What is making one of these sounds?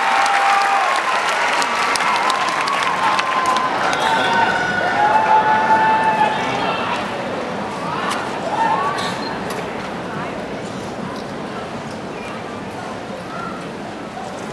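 A marching band plays brass instruments in a large open stadium, fading toward the end.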